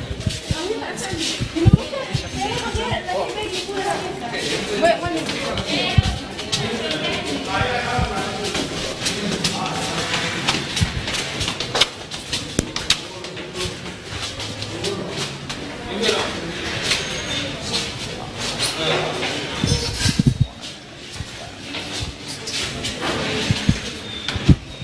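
A crowd of men talk and call out close by, outdoors.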